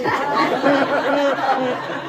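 An elderly woman talks softly close by.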